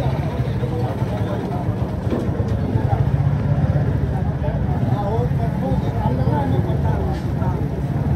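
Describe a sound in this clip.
A motorcycle engine rumbles steadily nearby as it rides slowly closer.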